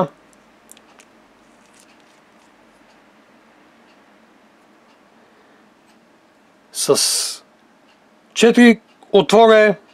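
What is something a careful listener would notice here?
Small metal parts scrape softly as they are screwed together by hand.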